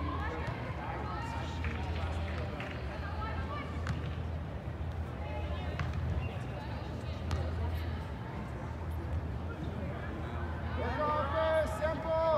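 A soccer ball is kicked with dull thuds.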